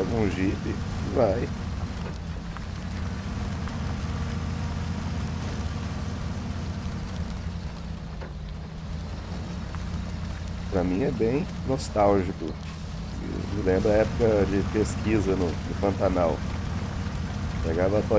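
A heavy truck engine rumbles steadily as the truck drives along a muddy track.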